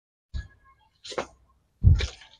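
Leafy stems rustle as a hand bends a branch.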